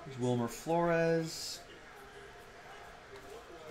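Trading cards shuffle and rustle between fingers.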